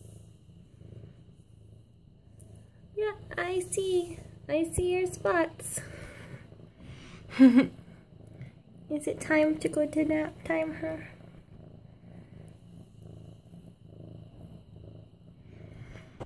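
A cat purrs softly and steadily close by.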